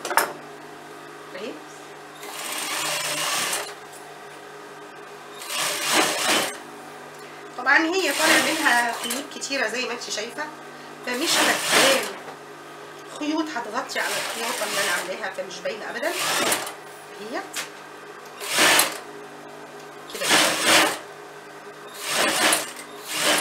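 A sewing machine runs in short bursts, whirring and stopping.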